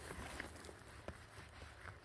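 Dry needles and twigs rustle under a hand.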